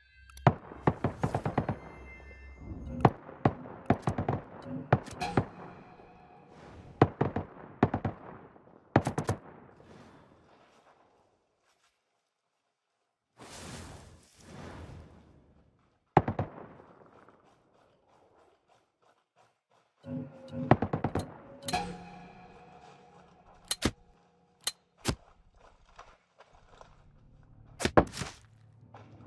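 Gunshots ring out in quick bursts and echo.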